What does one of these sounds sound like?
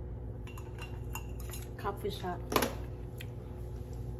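A metal cup clinks and rattles.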